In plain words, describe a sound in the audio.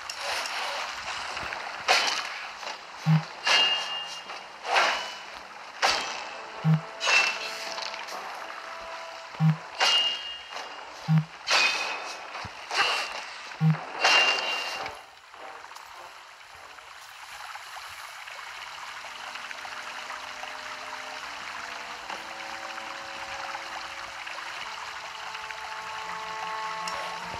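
A waterfall rushes steadily.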